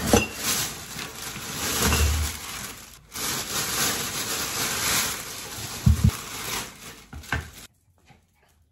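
Plastic bags rustle and crinkle loudly up close.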